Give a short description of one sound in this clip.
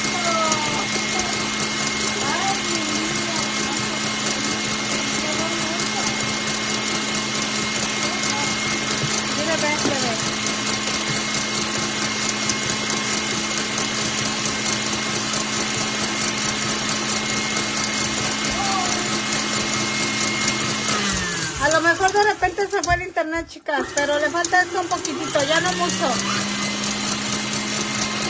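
A stand mixer whirs steadily as it beats batter, stops briefly, then starts again.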